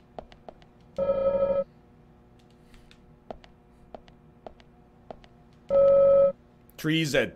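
A short tone chimes twice.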